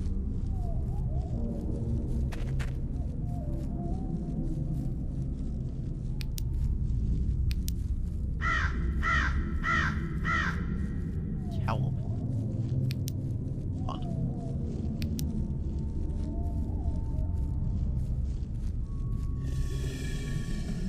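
Footsteps crunch through dry leaves on a forest floor.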